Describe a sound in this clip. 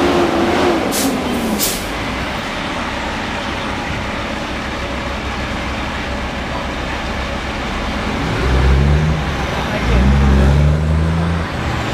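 A truck engine rumbles nearby on a busy street.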